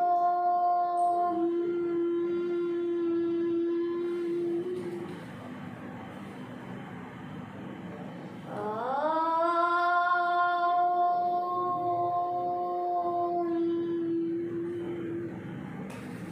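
A young girl chants a long, steady tone close by, pausing for breath between chants.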